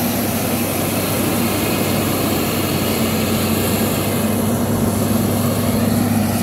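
A heavy diesel engine rumbles steadily nearby.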